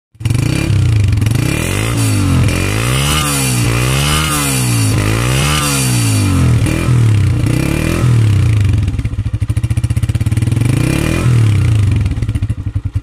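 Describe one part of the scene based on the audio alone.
A motorcycle engine runs close by, its revs rising and falling.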